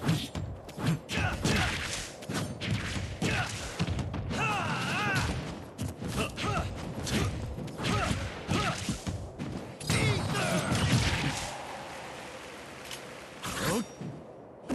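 Sword slashes and heavy hits clash in quick bursts.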